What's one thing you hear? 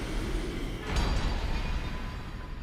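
A deep chime rings out as a reward is announced.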